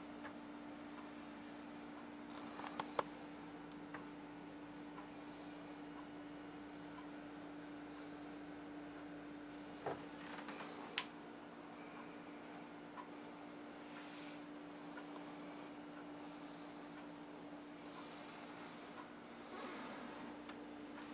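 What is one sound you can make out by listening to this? A refrigerator hums steadily.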